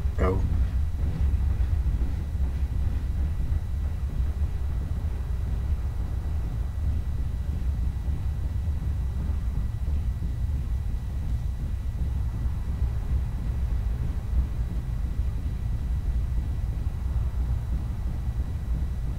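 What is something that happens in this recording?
A heavy walking mech rumbles low in a video game.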